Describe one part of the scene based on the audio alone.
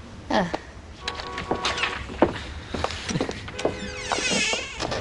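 A man's footsteps move away.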